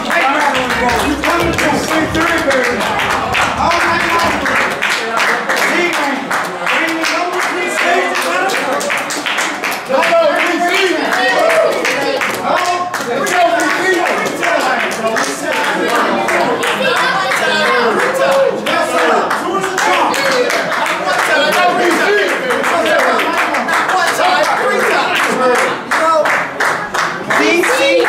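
A crowd of men talks and shouts excitedly close by.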